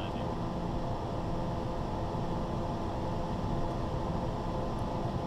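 Aircraft engines hum steadily.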